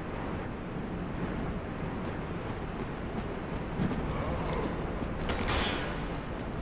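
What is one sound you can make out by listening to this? Footsteps in armour clank on stone.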